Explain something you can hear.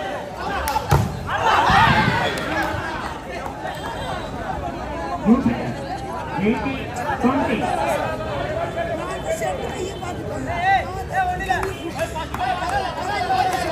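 Young men shout to each other during play.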